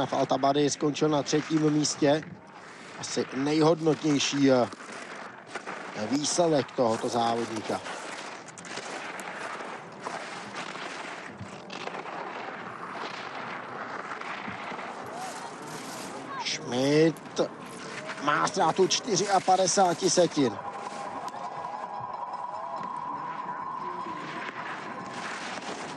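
Skis scrape and hiss across hard snow as a skier carves fast turns.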